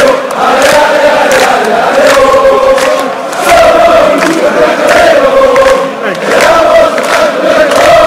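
A young man sings along loudly close by.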